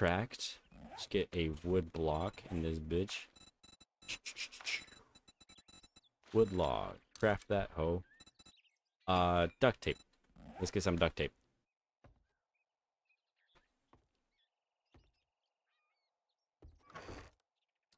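A young man talks with animation, close to a headset microphone.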